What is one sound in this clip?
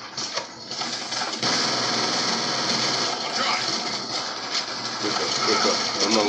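Rapid gunfire rattles from a video game.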